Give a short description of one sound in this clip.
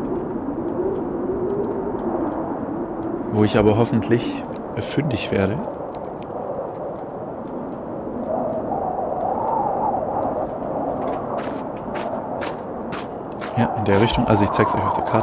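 A strong wind howls steadily.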